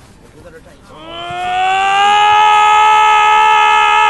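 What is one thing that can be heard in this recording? A young man wails loudly and sobs.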